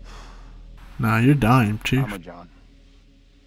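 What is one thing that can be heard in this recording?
A man speaks firmly.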